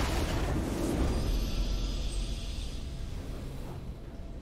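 A triumphant fanfare swells and slowly fades.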